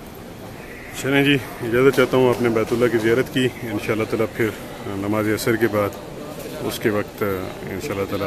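A man chants loudly through a loudspeaker, echoing widely.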